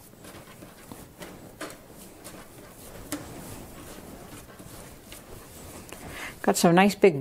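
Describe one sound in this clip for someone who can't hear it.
Hands knead and pat dough with soft, quiet thuds.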